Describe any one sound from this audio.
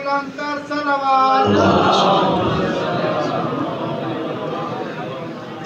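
A young man chants in a melodic voice through a microphone and loudspeakers.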